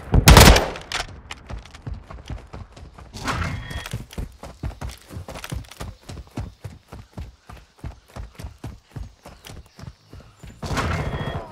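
Quick footsteps patter steadily on hard ground.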